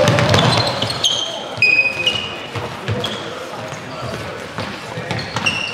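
Sports shoes squeak sharply on a hard indoor floor.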